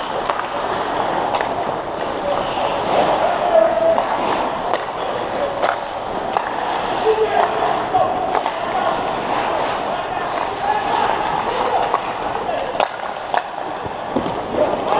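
Hockey sticks click and clack against a puck.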